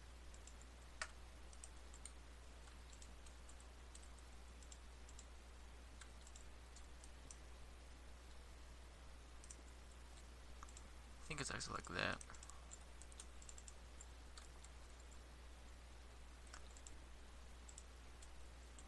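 Blocks are placed with soft, short clicks.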